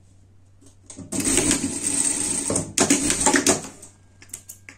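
A sewing machine runs in quick bursts.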